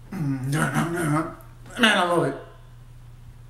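A young man sings loudly close to a microphone.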